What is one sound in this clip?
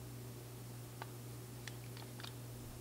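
Small metal parts click together.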